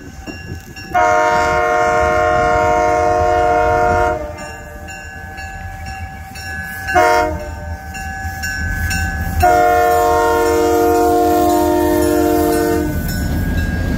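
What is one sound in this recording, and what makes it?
A train horn blares in long blasts, growing closer.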